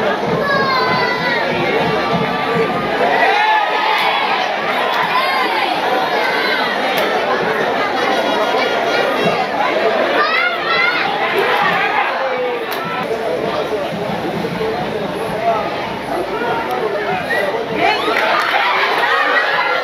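A large crowd cheers and shouts in a stadium.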